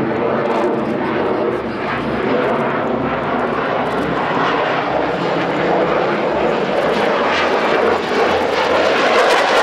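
Jet engines roar loudly overhead with a steady, rumbling hiss.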